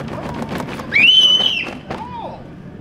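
A young child squeals loudly.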